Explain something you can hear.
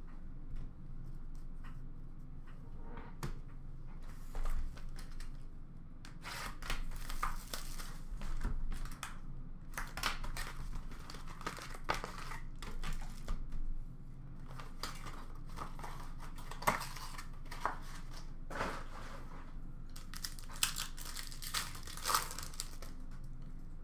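Plastic wrappers rustle and crinkle as card packs are handled.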